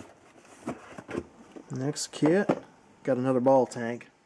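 Cardboard boxes slide and knock against each other.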